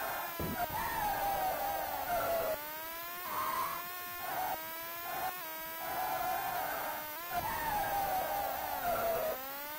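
Tyres screech and skid in long hissing bursts.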